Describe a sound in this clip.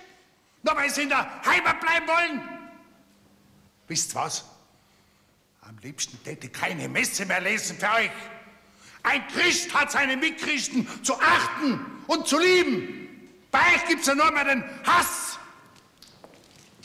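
An elderly man sings out loudly and with passion in an echoing hall.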